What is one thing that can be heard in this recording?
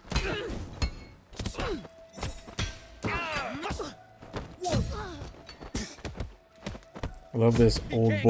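Fighters grunt and shout as they strike.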